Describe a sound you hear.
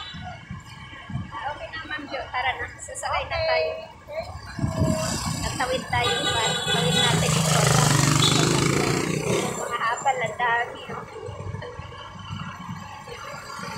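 A middle-aged woman talks cheerfully close by.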